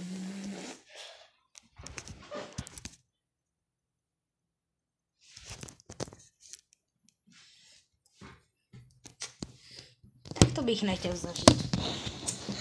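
Rustling and knocks of a phone being handled close up.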